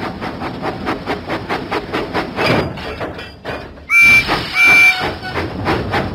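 A steam engine chuffs steadily.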